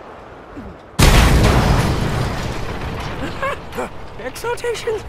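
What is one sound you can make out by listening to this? A large explosion booms and fire roars.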